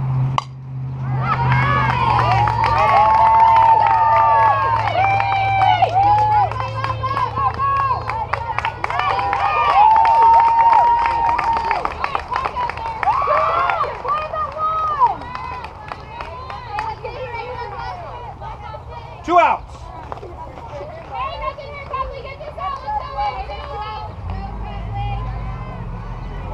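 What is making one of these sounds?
Young women cheer and chant loudly nearby.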